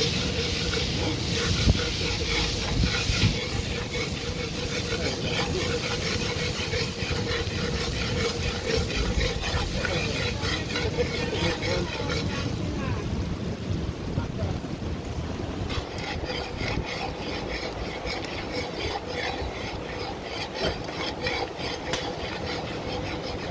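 A metal spoon scrapes against a metal pot.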